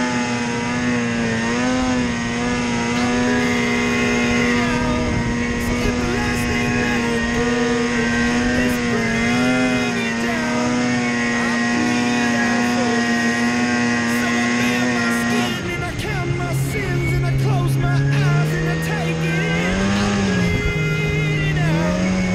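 A snowmobile engine drones loudly close by, its pitch rising and falling as it revs.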